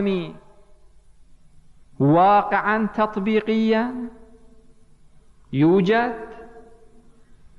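A man speaks slowly and with emphasis into a microphone, with long pauses, in an echoing hall.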